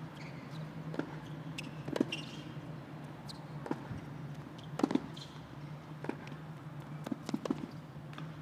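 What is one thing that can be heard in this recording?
A tennis ball is struck back and forth with rackets, with sharp pops.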